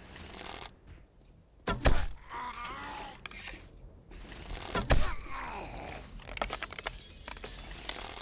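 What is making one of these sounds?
A bow twangs as arrows are loosed.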